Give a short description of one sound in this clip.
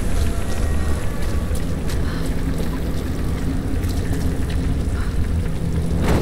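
A torch flame crackles and roars.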